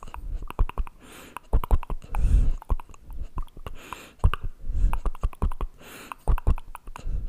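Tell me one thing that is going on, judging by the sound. A man blows soft breathy puffs into a microphone.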